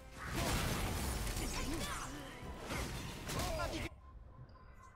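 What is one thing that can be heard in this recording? Heavy blows and whooshing swings clash in a noisy fight.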